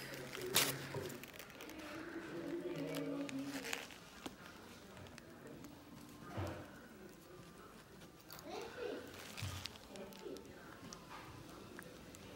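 A metal tool scrapes softly against a toenail.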